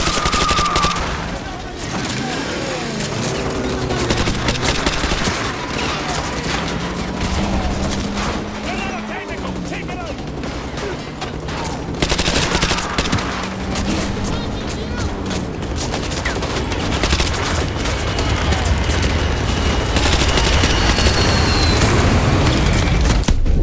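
Assault rifle gunfire cracks.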